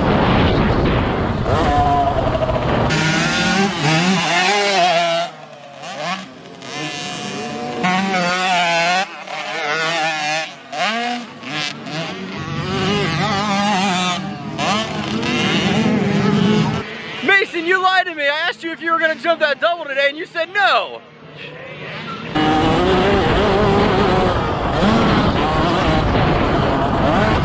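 A motocross bike engine roars and revs up close.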